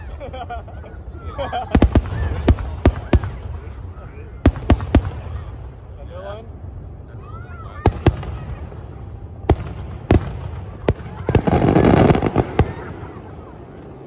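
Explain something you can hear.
Fireworks rumble and boom in the distance.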